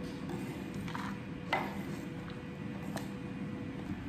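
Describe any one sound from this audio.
A knife scrapes chopped food off a board into a plastic bowl.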